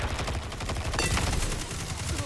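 An explosion bursts with a loud crack.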